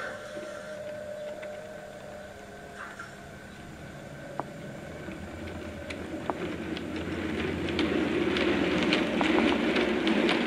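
A model train rumbles along its track, growing louder as it approaches.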